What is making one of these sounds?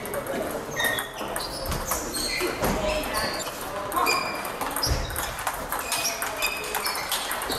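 Shoes squeak sharply on the floor.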